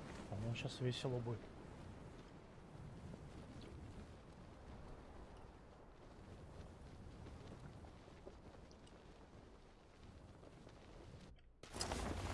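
Wind rushes steadily past during a parachute descent.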